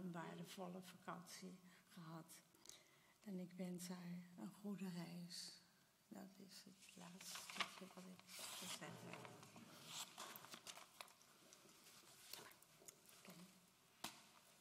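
A woman speaks calmly some distance away in an echoing room.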